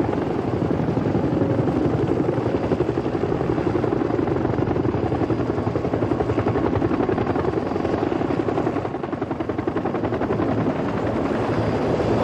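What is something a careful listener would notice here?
Helicopter rotors thump loudly and fast as several helicopters fly low overhead.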